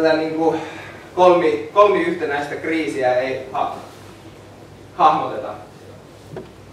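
A man speaks calmly to an audience.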